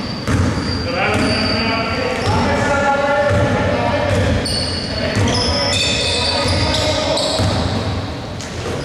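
Young men shout to each other across the court.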